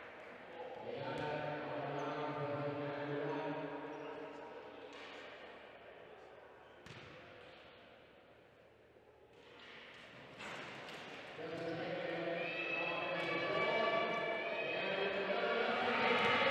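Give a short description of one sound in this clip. Wheelchair wheels roll and squeak on a hard court floor.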